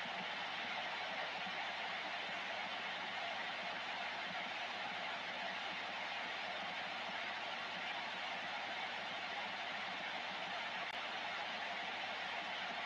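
Steady radio static hisses from a loudspeaker.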